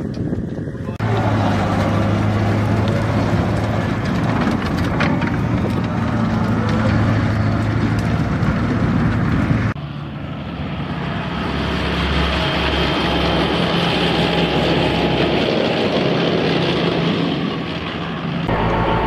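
A heavy tracked vehicle's engine rumbles loudly.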